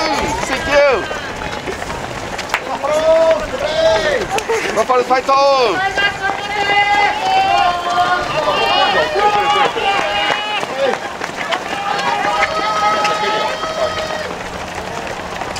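A crowd of spectators cheers and calls out loudly close by.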